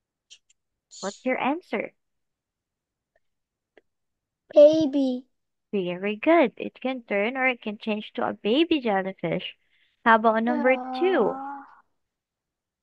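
A woman speaks clearly through an online call, reading out and explaining.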